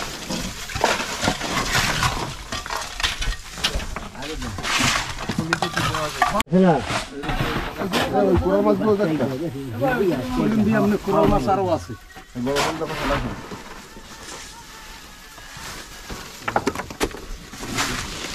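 Ice crunches and rustles as a man digs through it by hand.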